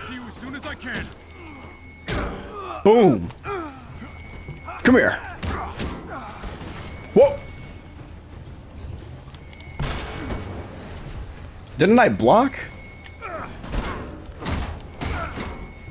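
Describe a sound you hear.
A metal shield clangs against enemies.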